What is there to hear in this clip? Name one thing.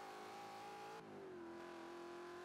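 A racing car engine drops in pitch as it shifts gear.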